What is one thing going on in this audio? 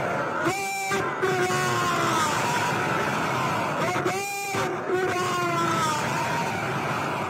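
A man shouts slogans into a microphone through loudspeakers outdoors.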